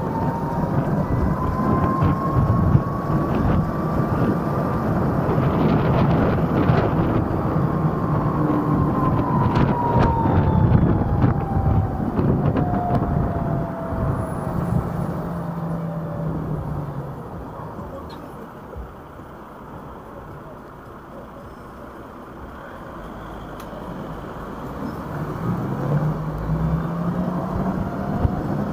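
Wind rushes and buffets loudly while riding, dying down when stopped.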